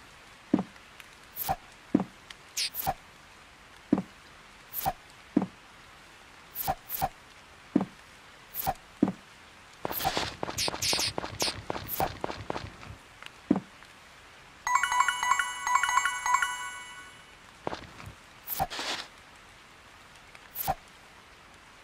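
Short soft clicks sound as game menu items are flicked through.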